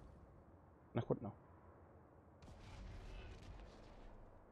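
A pistol fires a few shots.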